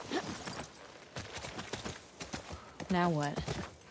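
A horse's hooves thud on soft ground.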